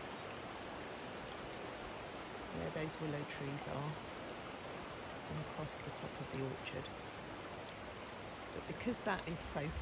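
Floodwater flows with a steady rushing hiss outdoors.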